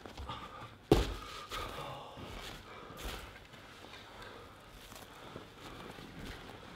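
Bare feet thump and patter across a wooden floor.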